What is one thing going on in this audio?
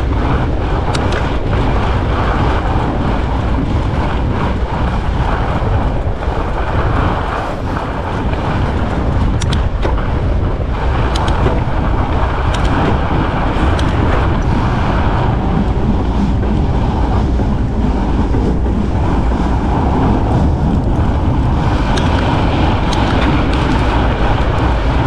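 Bike tyres crunch and hiss over packed snow.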